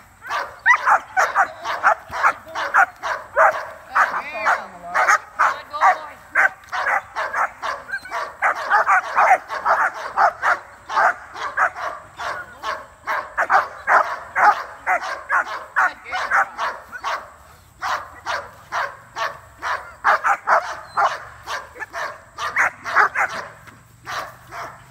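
A dog barks rapidly and fiercely, close by, outdoors.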